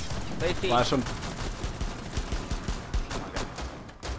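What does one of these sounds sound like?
A pistol fires a quick series of shots.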